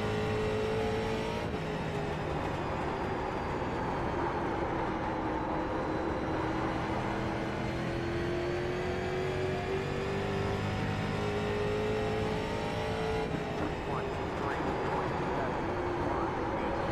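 Tyres hum and rumble on the track.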